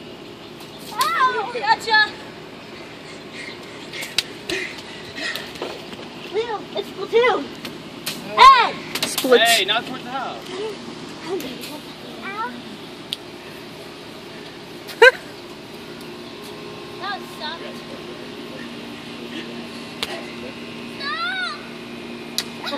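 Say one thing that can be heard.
Children shout and squeal excitedly outdoors.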